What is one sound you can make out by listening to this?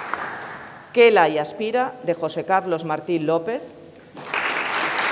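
A woman reads out calmly through a microphone.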